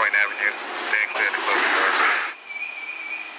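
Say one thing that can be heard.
Subway train doors slide shut with a hiss.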